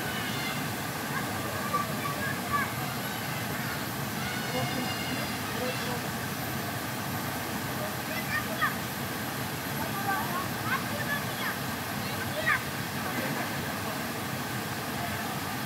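A waterfall rushes and splashes steadily nearby.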